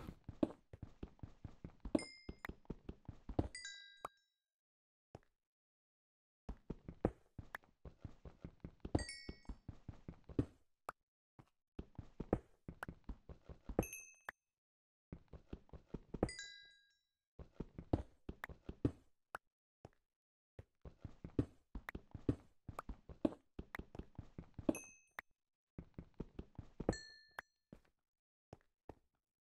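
Blocks crack and break under quick, repeated pickaxe strikes.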